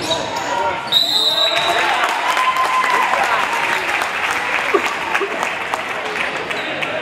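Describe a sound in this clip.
A crowd cheers and applauds in a large echoing gym.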